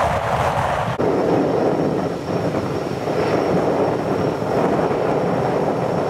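A propeller plane's engines hum on the runway.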